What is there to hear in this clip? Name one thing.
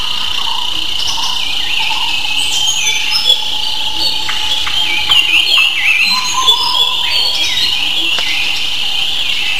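Gulls cry and squawk overhead.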